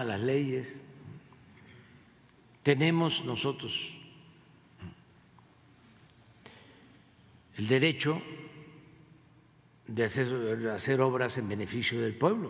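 An elderly man speaks calmly into a microphone, in short bursts with pauses.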